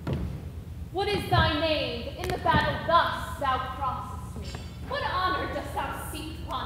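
A young girl declaims loudly in an echoing hall.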